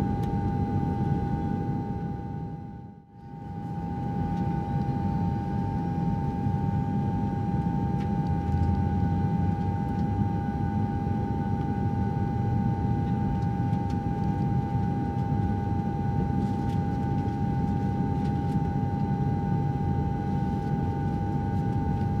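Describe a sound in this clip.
A jet engine roars steadily with a high whine inside an aircraft cabin.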